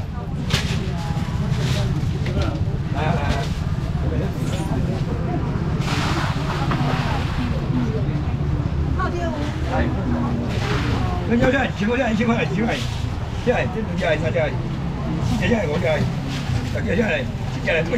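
A busy crowd chatters all around, close by.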